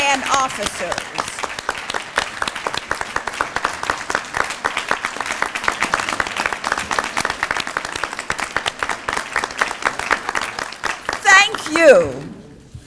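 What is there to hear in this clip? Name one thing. A crowd applauds loudly in a large hall.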